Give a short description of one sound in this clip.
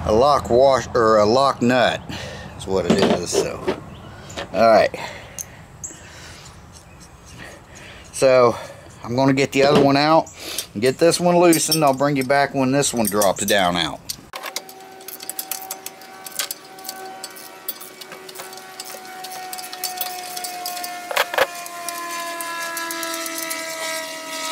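Metal tools clink against metal parts.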